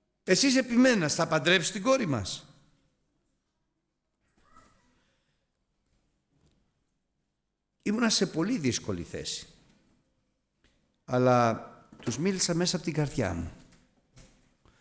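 A middle-aged man speaks with animation into a microphone, with pauses.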